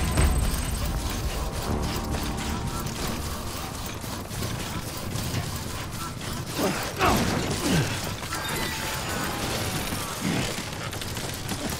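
Heavy footsteps tread through grass at a steady pace.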